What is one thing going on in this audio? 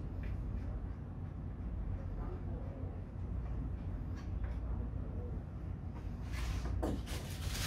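Metal tools clink and rattle.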